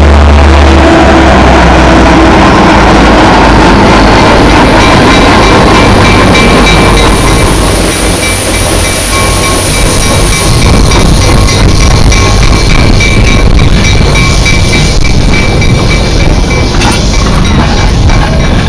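Train wheels clatter and squeal on the rails as cars roll past.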